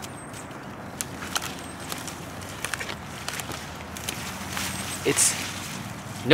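Leaves rustle and crackle close by.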